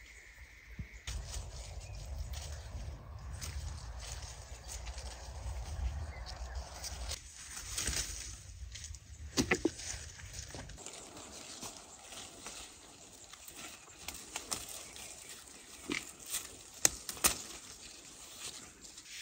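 Leaves rustle as hands push through a tree's branches.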